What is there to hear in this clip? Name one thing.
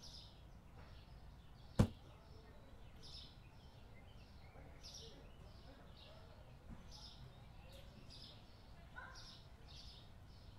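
Footsteps tap steadily on a wooden floor.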